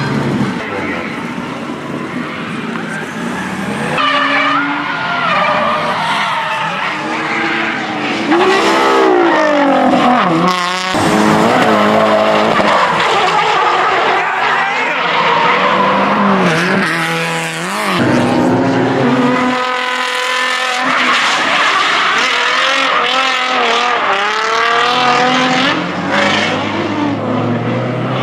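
A car engine revs hard and roars up and down.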